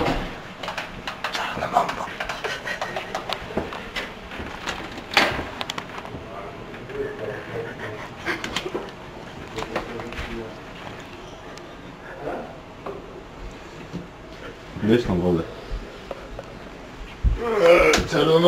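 Young men talk and whisper close by.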